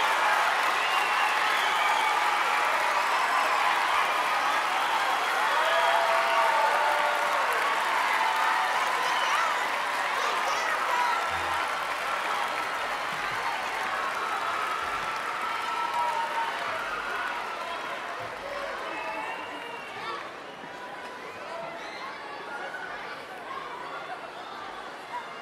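A large crowd chatters and cheers loudly in a big echoing hall, slowly quieting down.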